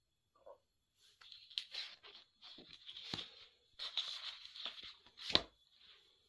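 Stiff book pages rustle and flap as they are turned by hand.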